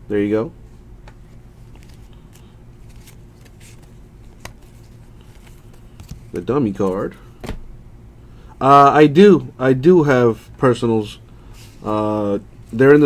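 Trading cards rustle and slide against each other in someone's hands.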